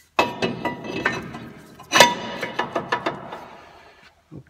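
A metal brake disc clanks and rings as it slides onto a wheel hub.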